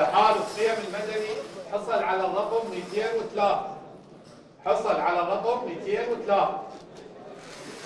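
A man speaks into a microphone, reading out clearly in a large room.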